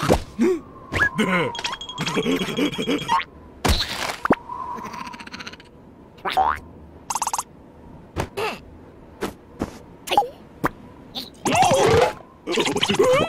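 A cartoon creature babbles and squeals in a high, squeaky voice.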